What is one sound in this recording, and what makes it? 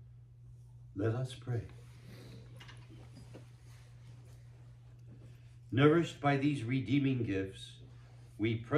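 An elderly man speaks slowly through a microphone in a quiet, echoing room.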